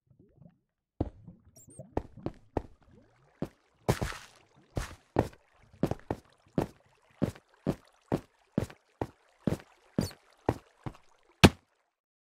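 Footsteps tap on stone at a steady pace.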